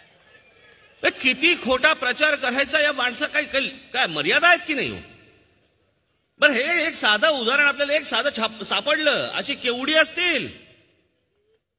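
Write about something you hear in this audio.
A man speaks forcefully into a microphone over loudspeakers, with pauses.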